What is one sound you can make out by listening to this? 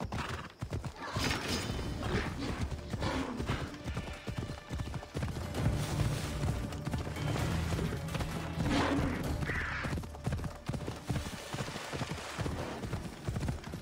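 Horse hooves gallop steadily over the ground.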